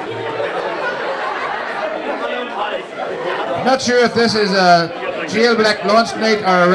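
A crowd of people chatters and murmurs in a lively room.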